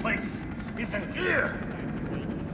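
An elderly man speaks urgently at close range.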